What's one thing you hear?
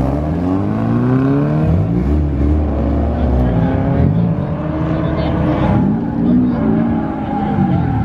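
A car engine revs hard and roars, rising and falling in pitch.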